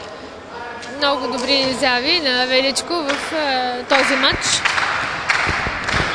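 A volleyball bounces on a hard indoor floor.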